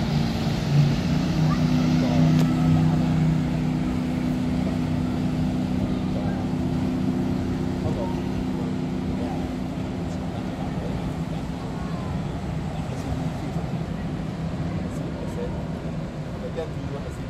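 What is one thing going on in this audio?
Water laps and splashes against the riverbank.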